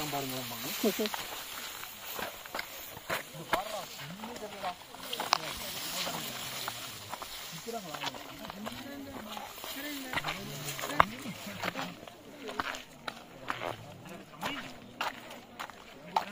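Young men talk to each other nearby.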